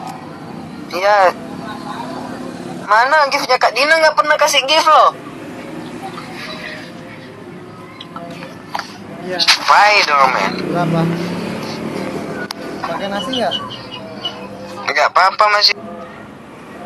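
A young man talks close to a phone's microphone.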